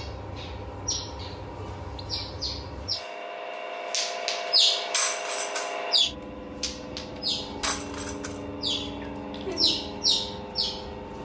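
Small otters chirp and squeak in short, high, sharp bursts.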